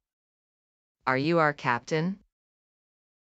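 A woman asks a question in a clear voice close by.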